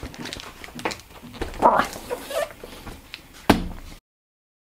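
A cardboard box is set down with dull knocks and scrapes on a table.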